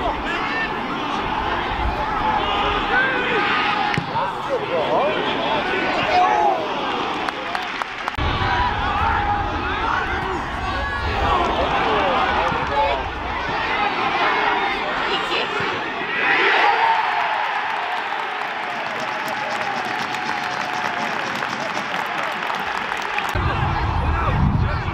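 A large crowd murmurs and chants outdoors.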